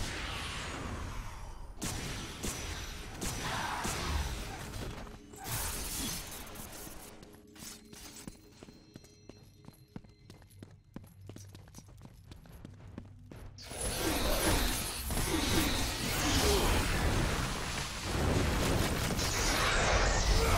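Chained blades whoosh and slash through the air in a fight.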